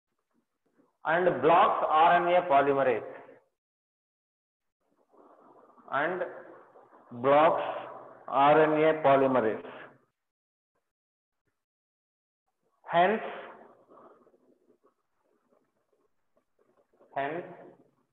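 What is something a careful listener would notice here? A man lectures calmly in short bursts, close to a microphone.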